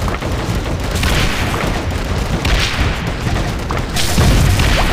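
Electric zaps crackle in bursts.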